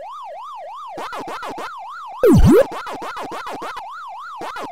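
Quick electronic chomping blips repeat in a rapid rhythm.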